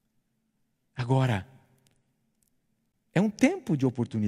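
A middle-aged man speaks with emphasis into a microphone.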